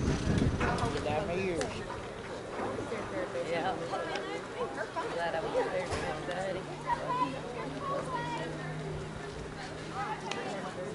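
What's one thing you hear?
Several adult players call out and chatter at a distance across an open field.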